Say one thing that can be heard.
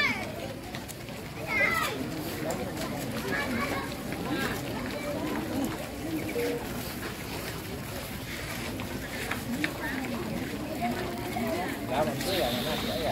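A crowd of children and adults chatter nearby outdoors.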